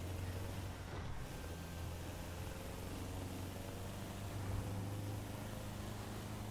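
A van engine drones steadily as it drives.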